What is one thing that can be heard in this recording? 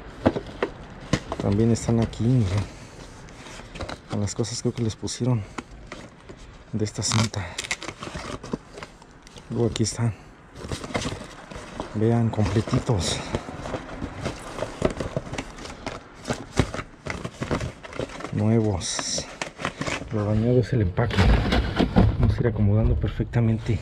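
A cardboard box crinkles and rustles as hands handle it.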